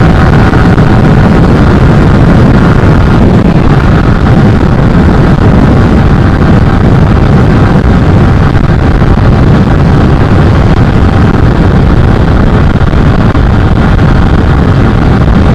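A single-cylinder sport motorcycle engine drones at high speed.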